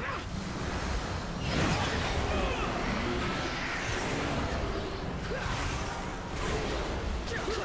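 Spell effects and weapon hits crash and whoosh in a busy game battle.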